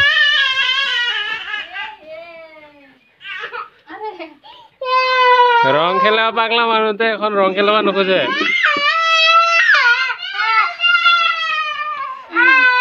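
A small child cries and wails loudly close by.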